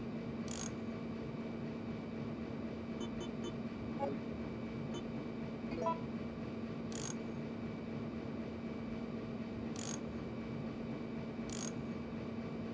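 Short, soft electronic blips sound now and then.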